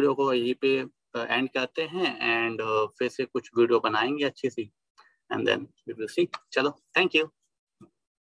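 A young man talks calmly and close into a microphone.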